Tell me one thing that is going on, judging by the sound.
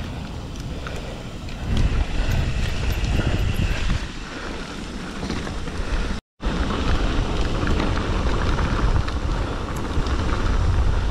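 Bicycle tyres rattle and rumble over cobblestones.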